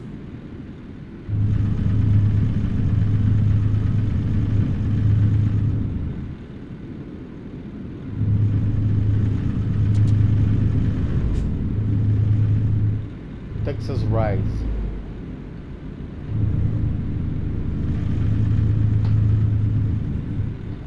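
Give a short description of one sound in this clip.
A truck engine drones low and steady, swelling and easing as it speeds up.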